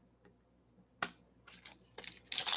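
Foil card wrappers crinkle and rustle in hands.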